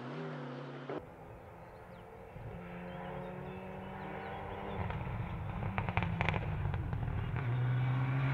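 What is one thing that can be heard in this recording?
A rally car engine roars and shifts gears in the distance.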